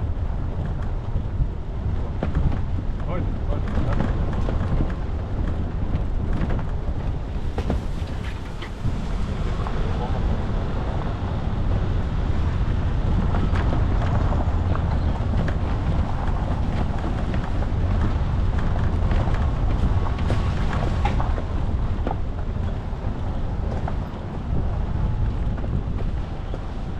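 Tyres crunch and rattle over a rough gravel track.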